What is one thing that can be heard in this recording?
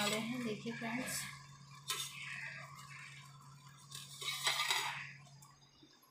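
A metal lid clinks against a steel pot.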